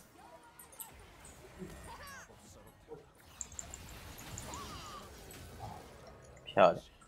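Magic spells whoosh and crackle in quick bursts.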